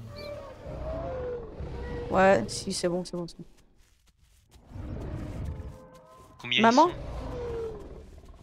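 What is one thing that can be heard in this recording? A large dinosaur runs with heavy footsteps through grass.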